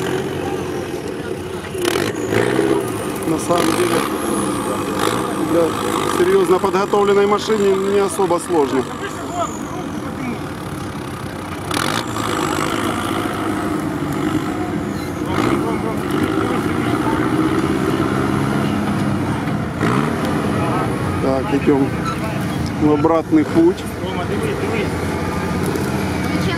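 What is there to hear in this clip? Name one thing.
An off-road vehicle's engine revs hard outdoors.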